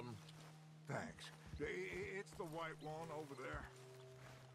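Another man answers with a calm voice.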